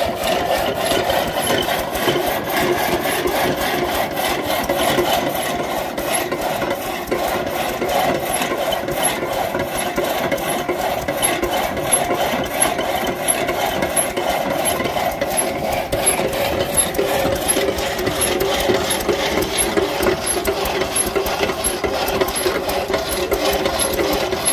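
An old stationary engine chugs and pops with a steady, even beat.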